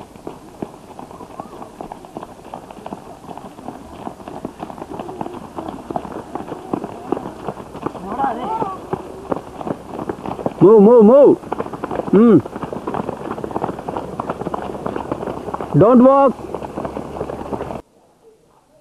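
A group of people run with quick footsteps on a dirt path.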